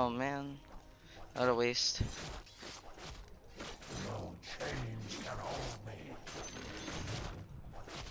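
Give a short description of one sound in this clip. Weapons clash and magic effects crackle in a fight.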